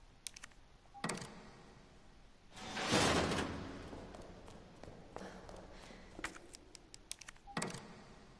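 A small metal door clanks open.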